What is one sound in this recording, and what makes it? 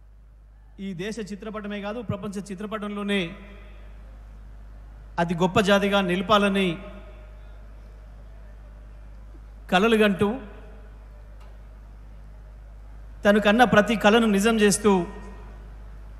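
A middle-aged man speaks forcefully into a microphone, in short bursts through loudspeakers.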